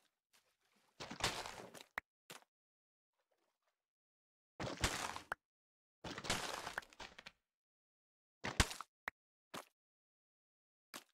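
Stone blocks crunch and crack as a pickaxe breaks them in bursts.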